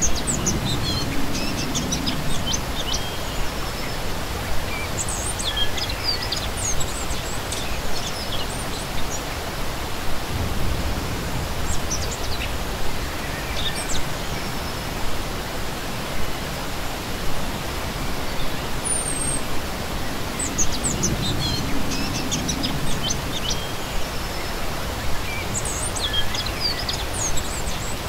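A shallow stream rushes and burbles steadily over rocks close by.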